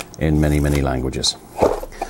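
Paper rustles as a booklet is handled.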